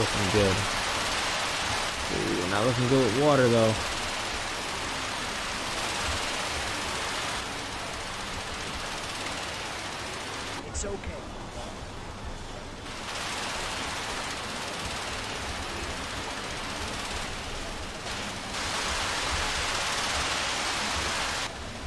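Water sprays hard from fire hoses with a steady rushing hiss.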